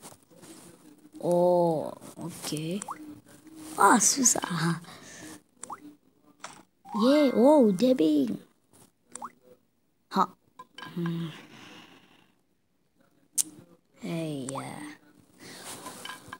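A young boy talks with animation close to a phone microphone.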